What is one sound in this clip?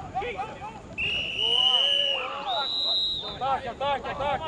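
A referee's whistle blows sharply twice.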